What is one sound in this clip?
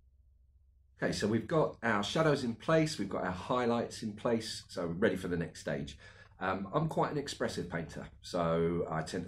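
A man speaks calmly and close by, explaining.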